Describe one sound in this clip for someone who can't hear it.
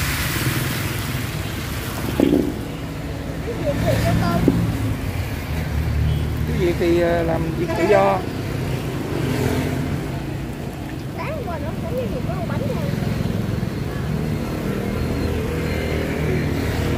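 A wood fire roars and crackles under a pan.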